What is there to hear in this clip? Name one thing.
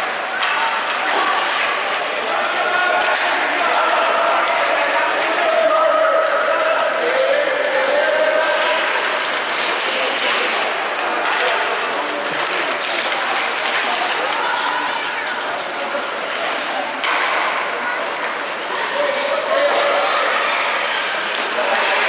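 Ice skates scrape and glide across ice.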